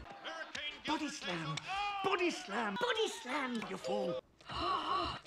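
A cartoon man shouts angrily.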